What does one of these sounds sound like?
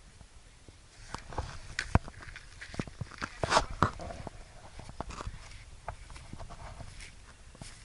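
Water splashes as a man wades in a lake.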